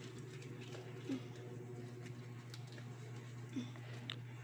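A plastic bag crinkles and rustles softly.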